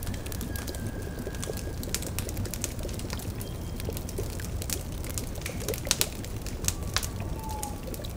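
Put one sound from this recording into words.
A cauldron bubbles softly.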